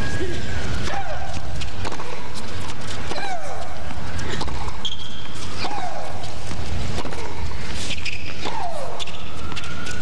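A young woman lets out loud shrieking grunts as she hits the ball.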